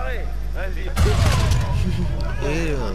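A grenade explodes with a deep boom.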